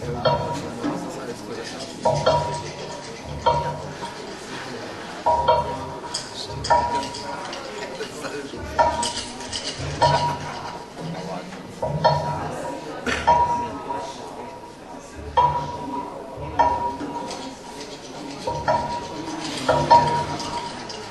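Drums are played in a loose, irregular rhythm.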